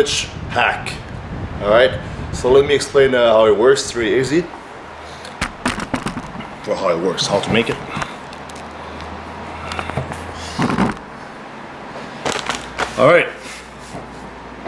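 A young man talks casually and close to the microphone.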